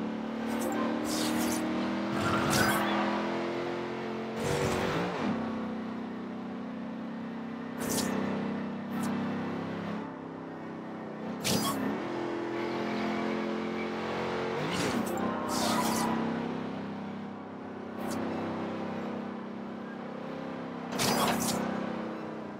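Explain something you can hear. A sports car engine pops and surges between gear shifts.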